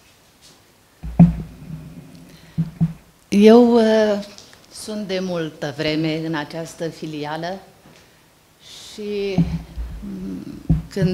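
An older woman speaks into a microphone.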